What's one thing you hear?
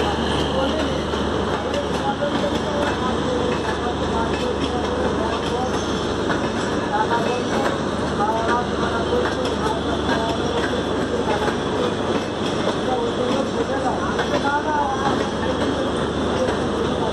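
A train rumbles and clatters steadily along the tracks, heard from on board.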